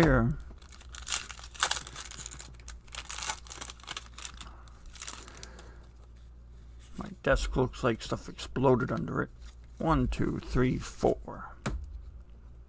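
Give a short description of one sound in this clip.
Playing cards rustle and click as they are handled.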